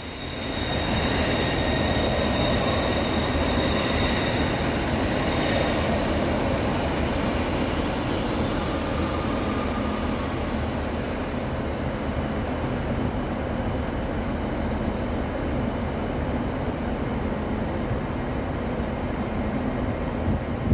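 A diesel train rumbles as it pulls away, echoing under a large station roof.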